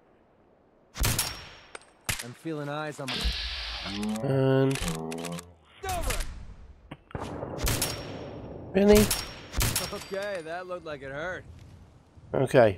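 A rifle fires single loud shots, one after another.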